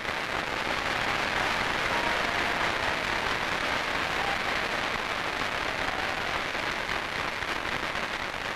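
A crowd of people murmurs and chatters in a large hall.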